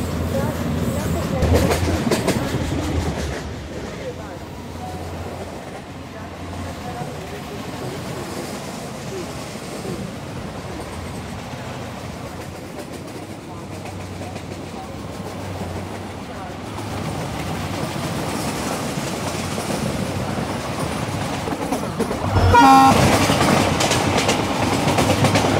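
A diesel locomotive rumbles along on rails.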